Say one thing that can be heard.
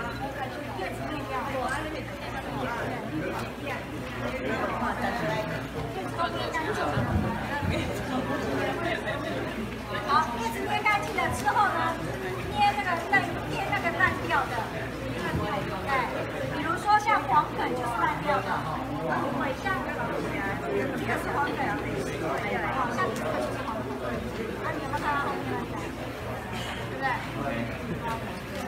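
Several people chat in the background.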